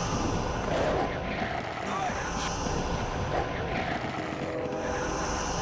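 Creatures fight with clashing hits and growls.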